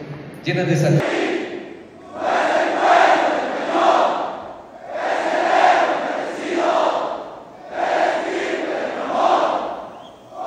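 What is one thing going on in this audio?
A large crowd cheers in waves in an echoing hall.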